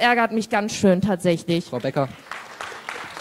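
A woman speaks into a microphone, her voice echoing in a large hall.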